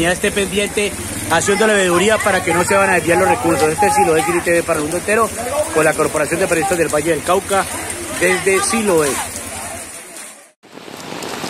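Men talk loudly and with animation close by.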